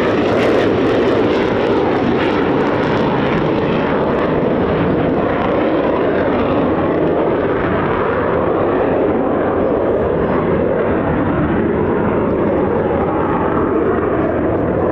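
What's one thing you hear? A jet engine roars loudly and steadily as a fighter jet flies low overhead.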